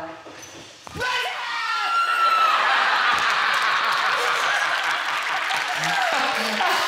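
A young woman screams loudly in fright.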